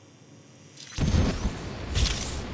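A blast bursts with a heavy boom.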